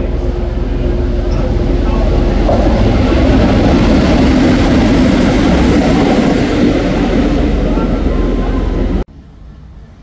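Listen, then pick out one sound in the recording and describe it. Train wheels rumble and clatter over rails.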